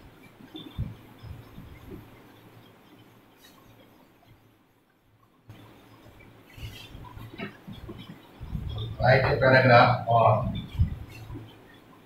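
A marker squeaks as it writes on a whiteboard.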